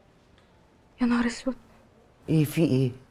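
A woman speaks in a tense voice, close by.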